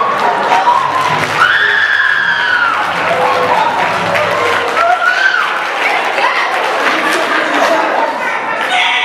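A woman sings loudly and with feeling on a stage in a large hall.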